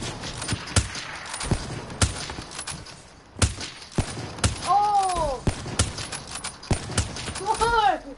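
Gunshots fire in sharp, scattered bursts.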